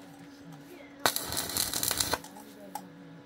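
An electric welder crackles and buzzes loudly in a short burst.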